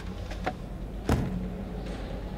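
A heavy thud as someone drops and lands on the ground.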